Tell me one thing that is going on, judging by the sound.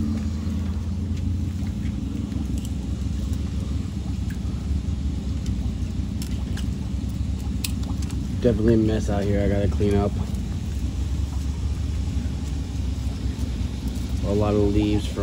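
A lizard's claws scrape and tap on concrete.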